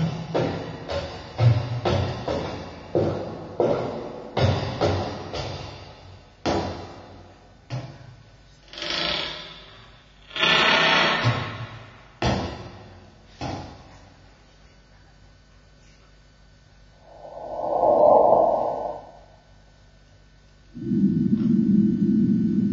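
Two musicians play instruments, with sharp struck notes and swelling tones.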